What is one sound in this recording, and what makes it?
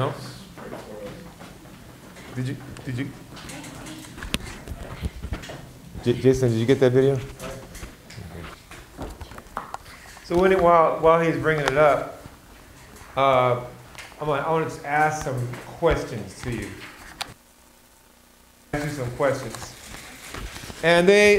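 A middle-aged man speaks calmly to a room, heard through a microphone.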